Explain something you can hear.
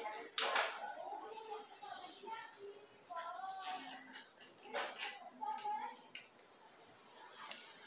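Metal parts click and clink as a bicycle is worked on.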